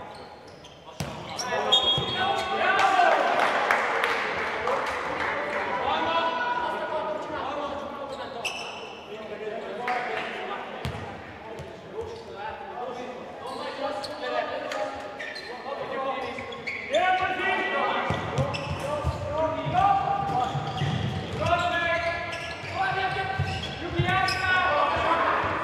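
A ball thuds as players kick it on a hard indoor court.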